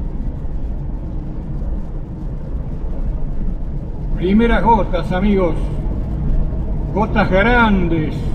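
Raindrops patter on a car windshield.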